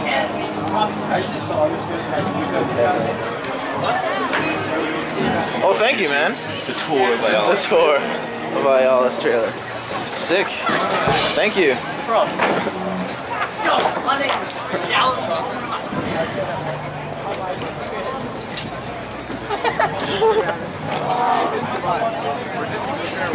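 A crowd chatters all around outdoors.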